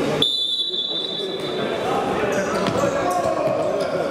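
A futsal ball is kicked on a wooden court.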